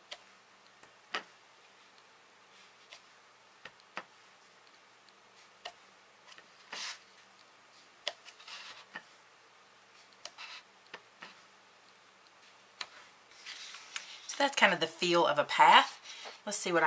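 Paper rustles and slides under hands.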